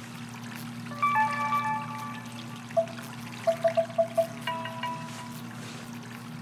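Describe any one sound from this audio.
A handheld game beeps with short electronic tones.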